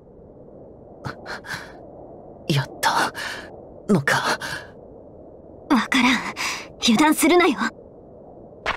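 A young man speaks tensely and close.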